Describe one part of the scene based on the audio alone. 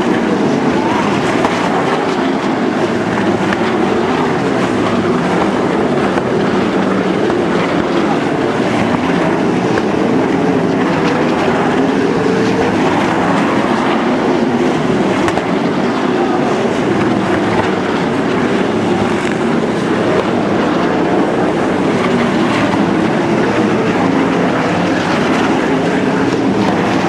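Racing car engines roar loudly and steadily as the cars speed past.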